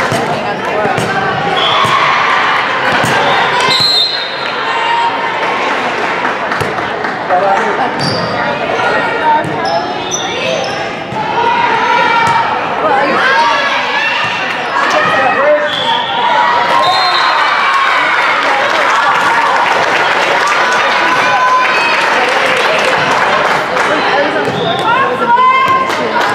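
Teenage girls shout and call out in a large echoing gym.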